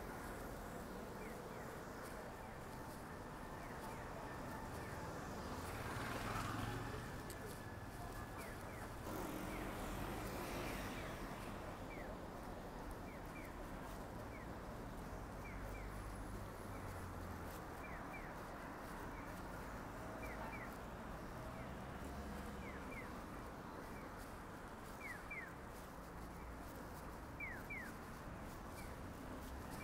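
Cars drive past on a street with a steady rumble of traffic.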